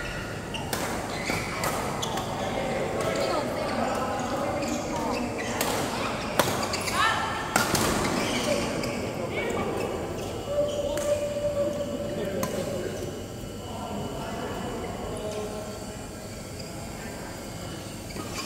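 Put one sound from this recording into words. Shuttlecocks are struck with rackets in sharp pops, echoing in a large hall.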